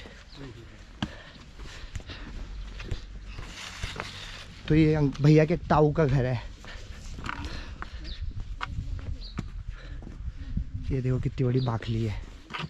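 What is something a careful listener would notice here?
Footsteps tread on stone paving outdoors.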